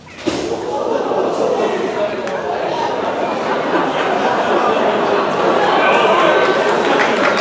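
A large band plays loudly in a big echoing hall.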